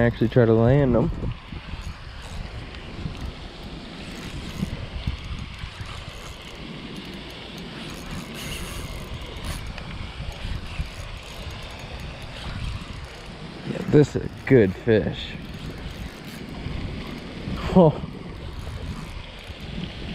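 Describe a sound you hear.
A fishing reel clicks as its handle is cranked.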